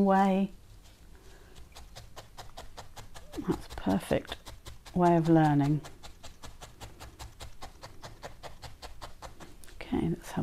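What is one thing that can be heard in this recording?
A needle stabs rapidly and repeatedly into wool with soft, quick pokes.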